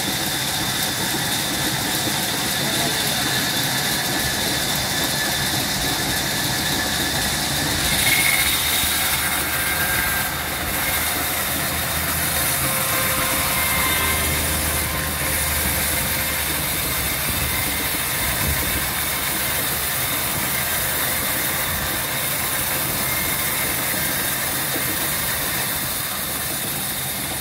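A band saw machine runs with a steady loud whine.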